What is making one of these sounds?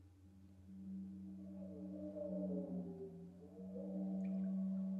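A gong shimmers with wavering, bending tones.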